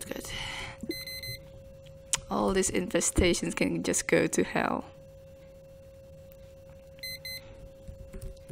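Short electronic beeps sound twice.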